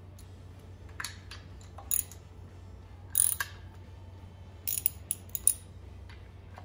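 A ratchet wrench clicks in short bursts.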